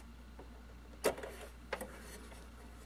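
A small plastic latch clicks.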